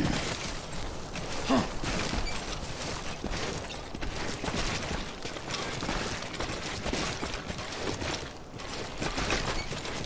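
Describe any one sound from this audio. A heavy pack rattles and clanks with each step.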